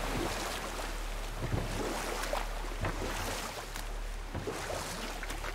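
Oars dip and splash in the water with a steady rowing rhythm.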